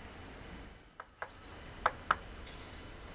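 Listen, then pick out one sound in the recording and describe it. A ping-pong ball clicks sharply on a table and paddle a few times.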